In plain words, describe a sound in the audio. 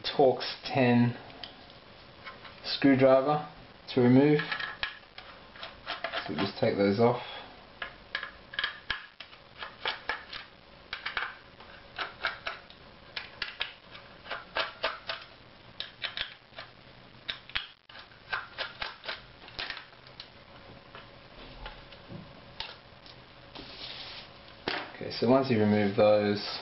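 A small screwdriver clicks and scrapes against metal screws.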